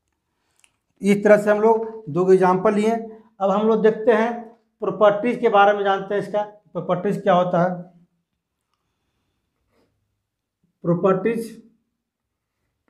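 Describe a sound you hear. A middle-aged man speaks clearly and calmly, close by.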